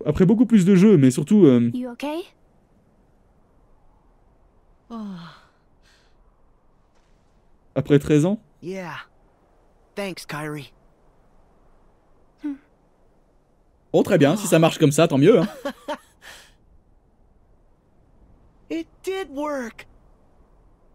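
A man talks close to a headset microphone.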